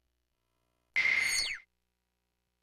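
A game menu plays a short whooshing chime with a falling tone.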